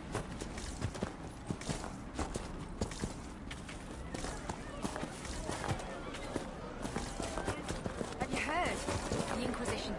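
Footsteps run quickly over grass and earth.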